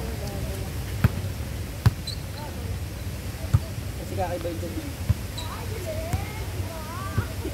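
A volleyball is struck with sharp slaps outdoors.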